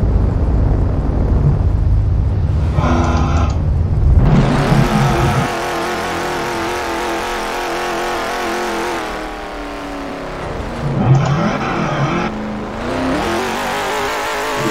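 A car engine roars, revving up and down.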